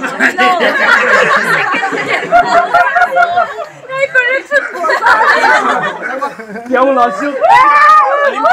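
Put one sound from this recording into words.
Young men and women chatter and laugh close by.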